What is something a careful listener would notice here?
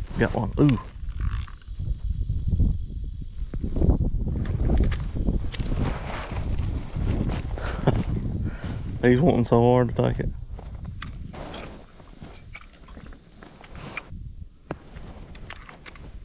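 A small toy fishing reel clicks as it winds.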